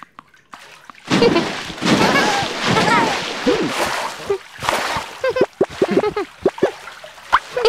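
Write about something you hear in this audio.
Water splashes and sloshes in a pool.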